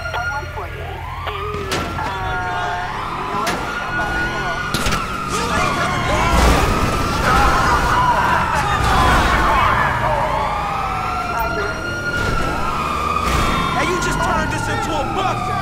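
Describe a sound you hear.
A sports car engine roars as the car speeds along.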